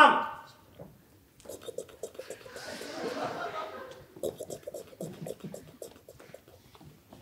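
A young man hums and sings rhythmic sound effects close by.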